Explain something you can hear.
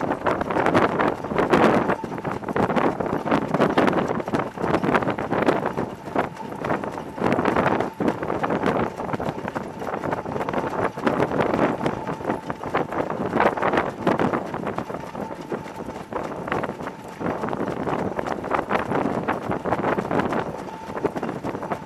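Horses' hooves pound on a dirt track close by.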